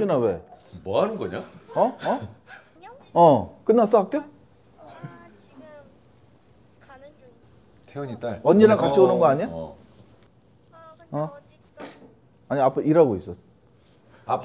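A young man talks on a phone with animation, close by.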